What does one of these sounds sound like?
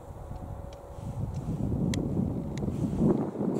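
Wind blows outdoors, rumbling against the microphone.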